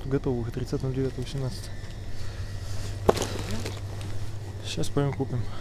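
A cardboard box rustles and scrapes in hands.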